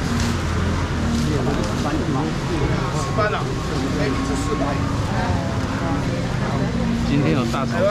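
A man scoops fish into a plastic bowl with a clatter.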